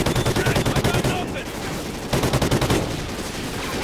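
An automatic rifle fires rapid bursts of shots close by.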